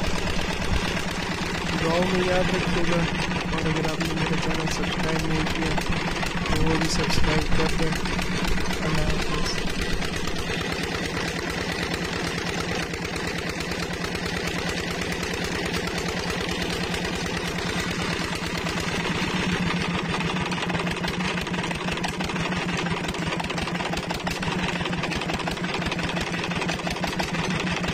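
A diesel engine chugs steadily and loudly close by.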